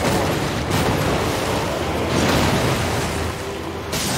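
A huge beast crashes down with heavy thuds.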